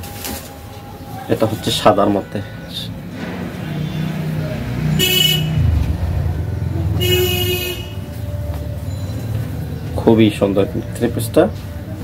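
Fabric rustles as a garment is unfolded and handled.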